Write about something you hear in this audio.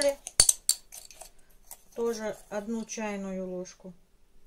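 A metal spoon scrapes and stirs in a bowl of flour.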